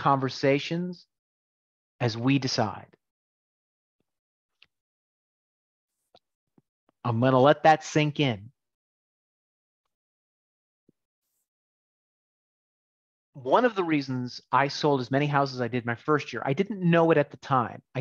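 A middle-aged man speaks calmly through a microphone on an online call, with pauses.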